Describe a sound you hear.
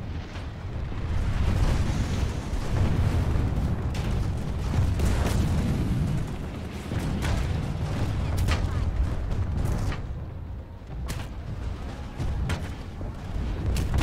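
Energy weapons fire in sharp, crackling bursts.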